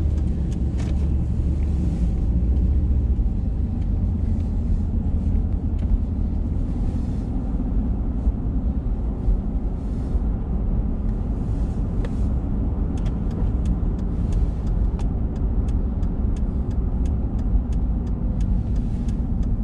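Tyres roll on asphalt with a low, steady rumble.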